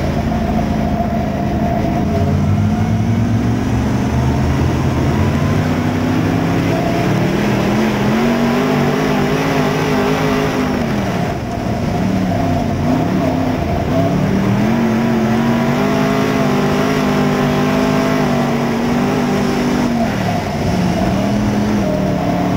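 A race car engine roars loudly up close, rising and falling in pitch as it revs.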